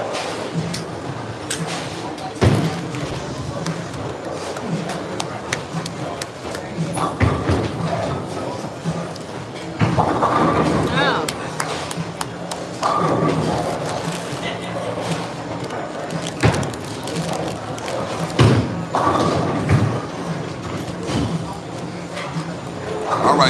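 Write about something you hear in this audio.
Bowling pins crash and clatter in a large echoing hall.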